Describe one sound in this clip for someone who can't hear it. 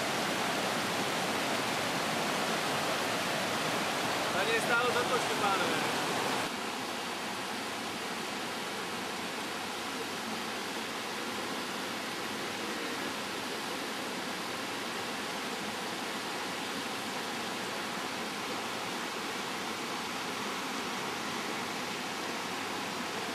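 A mountain stream rushes loudly over rocks close by.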